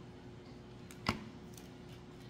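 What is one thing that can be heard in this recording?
A glue gun is set down on a table with a knock.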